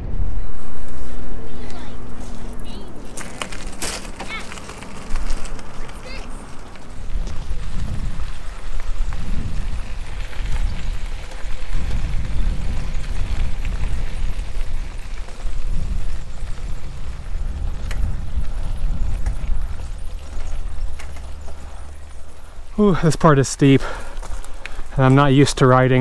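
Bicycle tyres crunch over a gravel and dirt trail.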